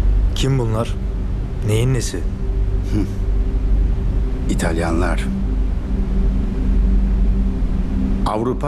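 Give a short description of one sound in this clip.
A man speaks slowly in a low, calm voice, close by.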